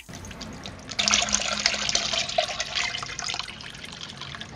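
Liquid pours and splashes into a pot.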